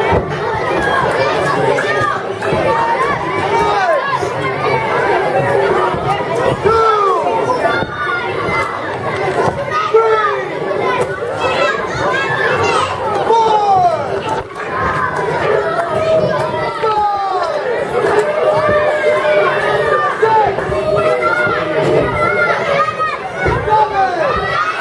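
A crowd of children and adults cheers and shouts in a large echoing hall.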